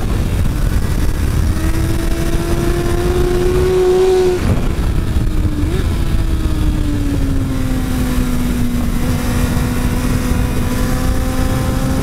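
Wind rushes loudly past at speed.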